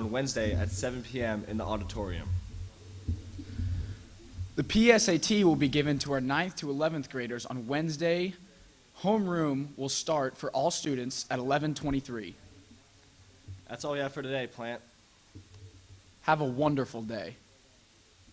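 A young man speaks into a microphone in a lively way.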